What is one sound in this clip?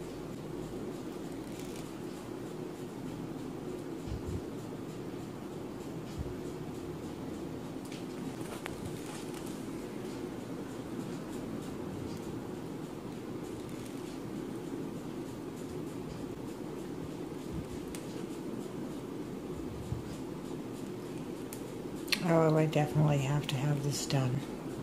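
A cotton thread rasps softly as it plucks hairs.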